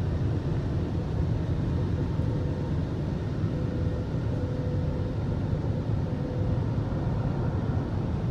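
Large rotating brushes scrub and swish against a car's window, heard from inside the car.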